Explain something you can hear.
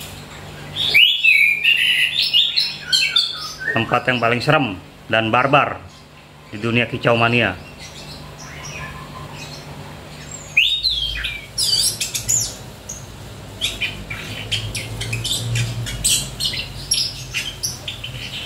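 A caged songbird sings close by in loud, varied chirps and trills.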